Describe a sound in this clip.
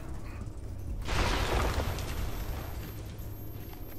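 Flames burst with a loud whoosh.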